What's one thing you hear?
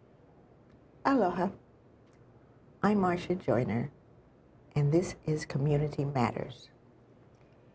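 An elderly woman speaks with animation into a microphone.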